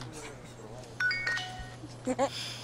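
A phone plays short electronic beeps.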